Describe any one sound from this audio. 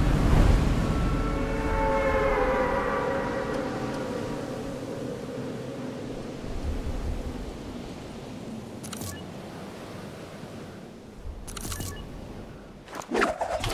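Wind rushes loudly during a fast fall through the air.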